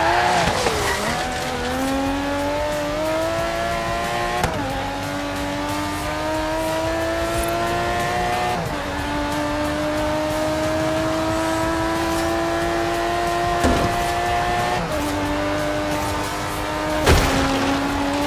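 A racing car engine drops in pitch with each gear change.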